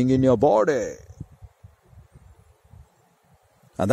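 Wind rumbles faintly outdoors.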